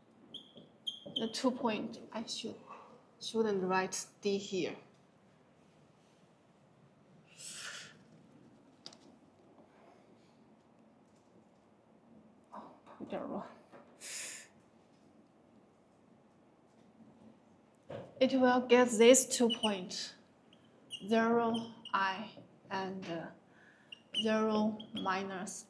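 A woman speaks calmly, with long pauses between phrases.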